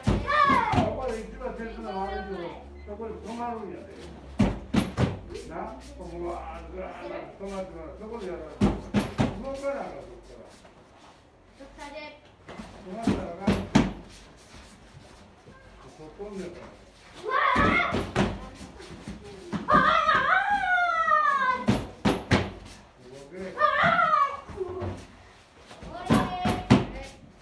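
A kick thuds repeatedly against a padded bag.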